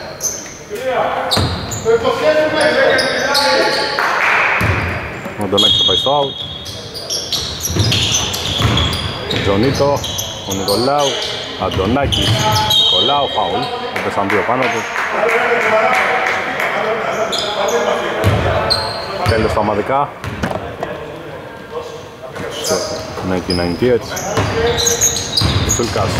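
Young men call out and shout to each other in an echoing hall.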